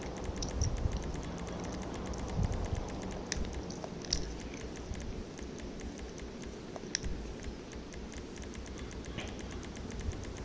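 Soft electronic menu clicks tick rapidly, over and over.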